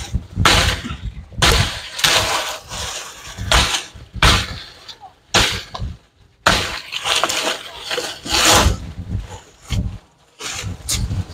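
A machete chops through bamboo and brush with sharp thwacks.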